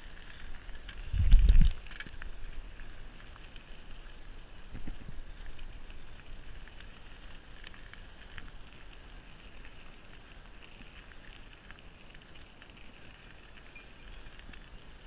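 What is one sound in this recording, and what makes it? Bicycle tyres roll steadily over a paved road.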